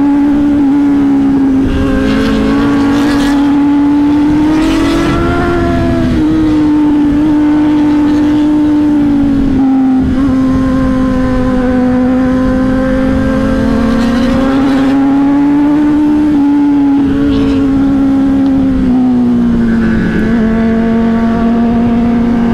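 A motorcycle engine hums steadily close by, its pitch rising and falling as it speeds up and slows.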